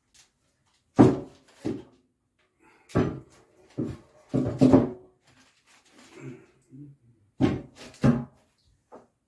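A plastic helmet knocks and thuds against a table.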